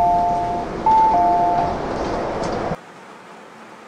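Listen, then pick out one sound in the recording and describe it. Train doors slide open.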